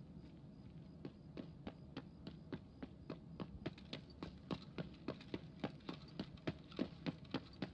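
Footsteps tread quickly across a hard floor, growing louder.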